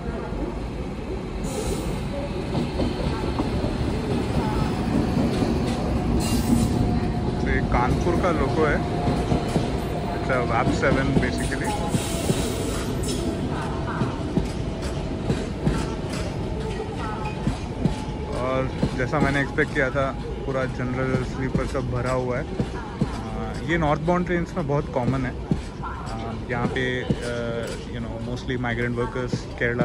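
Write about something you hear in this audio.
A train rumbles past with a steady low roar.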